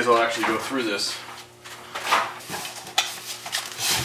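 A metal ladder creaks and clanks as a man climbs it.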